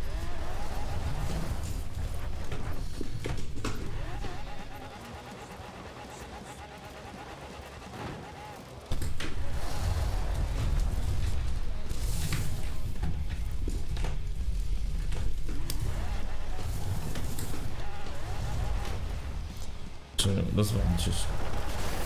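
A car engine roars and revs.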